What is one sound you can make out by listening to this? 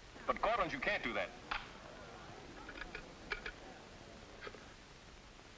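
A telephone receiver clicks down.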